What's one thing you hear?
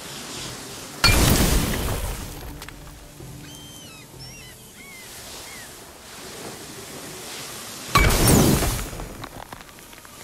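A burst of fire whooshes and crackles loudly.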